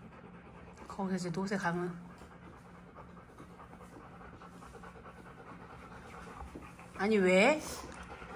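A dog whines briefly.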